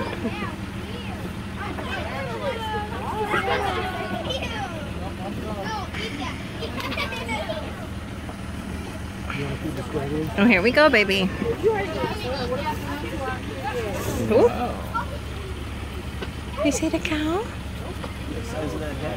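Adults talk casually close by.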